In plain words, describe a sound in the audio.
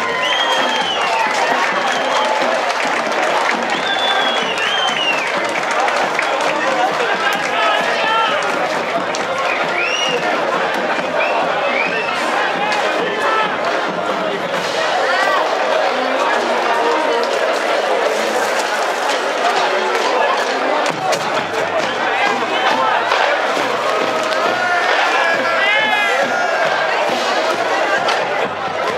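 A large crowd chatters and cheers loudly outdoors.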